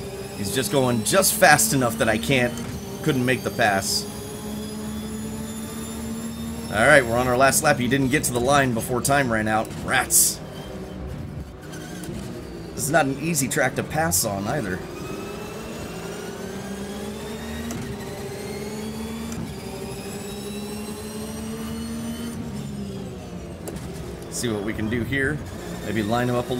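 A racing car engine drones steadily, its pitch rising and falling through gear changes.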